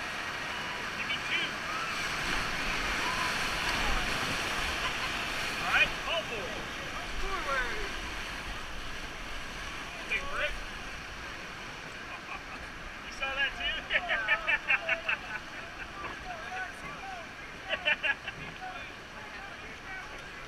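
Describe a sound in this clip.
Young women and men laugh and shout close by, with excitement.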